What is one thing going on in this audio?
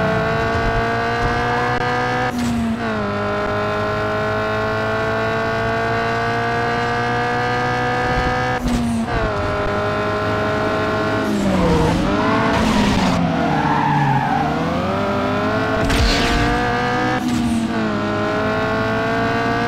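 A car engine roars at high revs, dropping briefly with each gear change.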